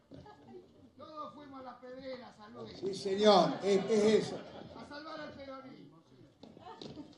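A man speaks with animation through a loudspeaker in a large hall.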